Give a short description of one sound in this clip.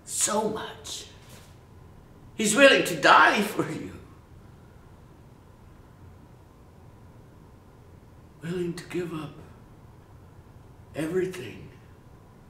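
A middle-aged man speaks close by, slowly and earnestly, with long pauses.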